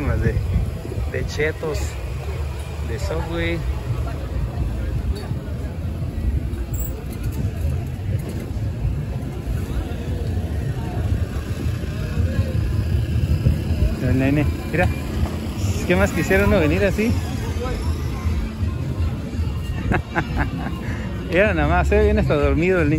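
Men and women chat in a busy outdoor crowd.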